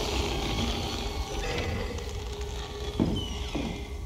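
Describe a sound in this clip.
Heavy footsteps thud on a wooden floor and fade away.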